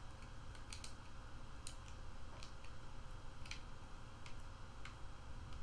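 Small coins clink and jingle as they are picked up.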